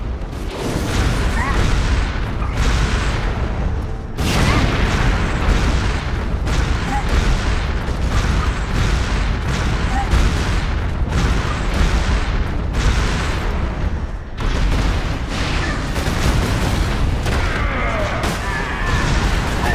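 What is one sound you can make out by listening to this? A jetpack roars loudly in long bursts.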